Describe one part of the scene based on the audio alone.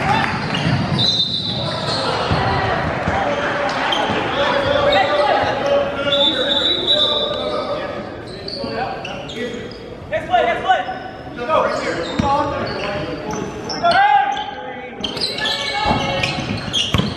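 A crowd of spectators chatters and calls out in an echoing gym.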